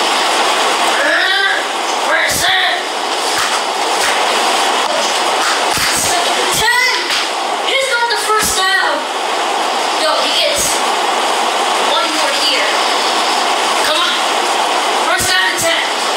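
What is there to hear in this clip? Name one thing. A boy talks excitedly nearby.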